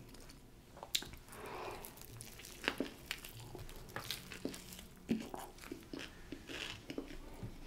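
A woman chews food close to a microphone.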